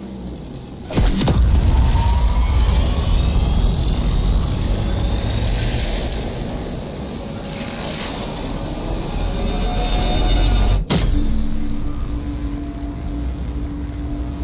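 A machine rumbles with a loud, deep roar and rising whines.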